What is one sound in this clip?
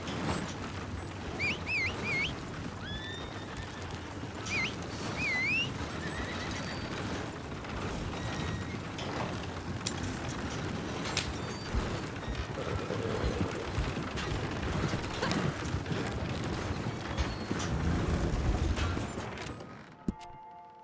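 A wooden wagon rattles and creaks as it rolls over rough ground.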